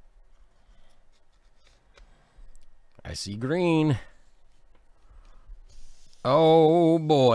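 Paper rustles as a card slides out of a stiff envelope.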